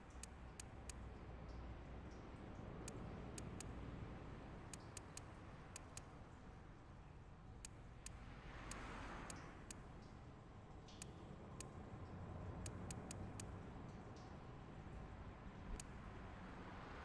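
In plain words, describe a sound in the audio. Soft menu clicks tick as a selection moves.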